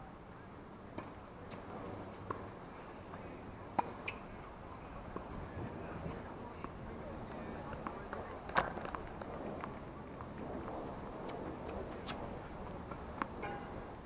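Tennis balls are struck by rackets with sharp pops, heard outdoors at a distance.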